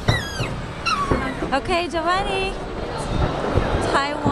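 Fireworks crackle and sparkle.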